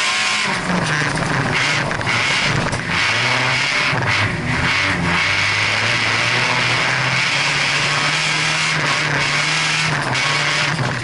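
A car engine roars loudly from inside the cabin, revving up and down.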